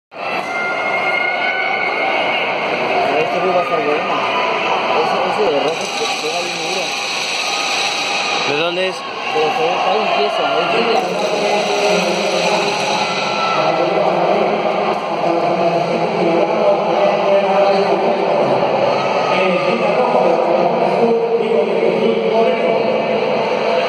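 A crowd of men talk and murmur throughout a large echoing hall.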